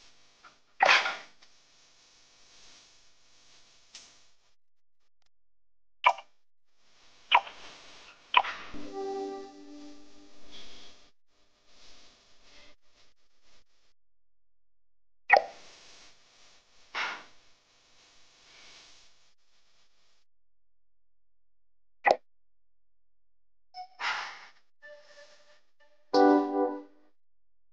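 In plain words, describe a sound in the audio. Short game sound effects chime and whoosh as menus open.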